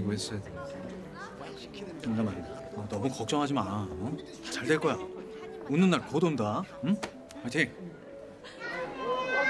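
A second man answers close by.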